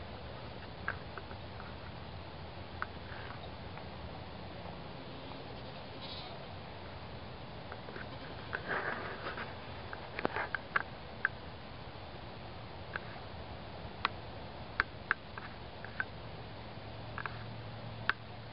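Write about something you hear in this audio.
Sheep bleat in the distance.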